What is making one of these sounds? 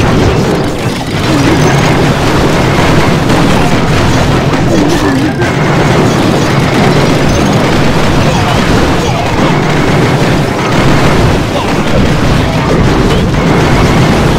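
Cartoon battle sounds of blasts and crackling fire go on steadily.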